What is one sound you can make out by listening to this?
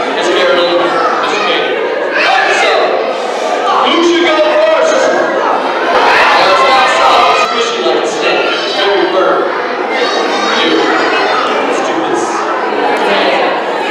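A young man talks with animation through a handheld microphone and loudspeaker.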